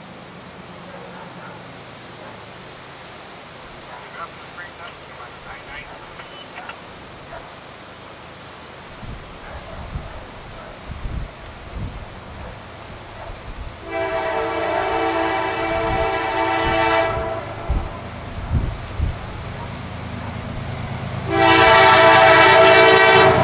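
A diesel locomotive engine rumbles steadily as a train approaches.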